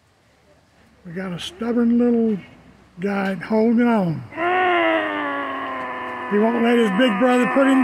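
Young men groan and yell loudly with strain.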